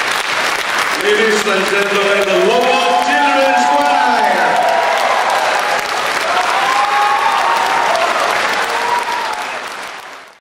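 A choir of young men and women sings together in a large hall.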